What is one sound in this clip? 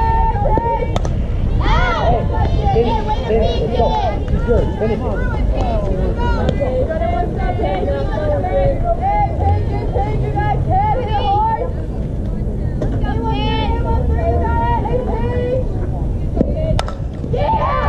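A bat cracks sharply against a softball.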